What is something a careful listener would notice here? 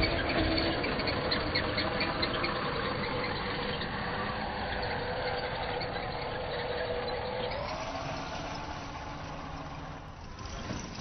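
A truck engine roars and strains as it climbs.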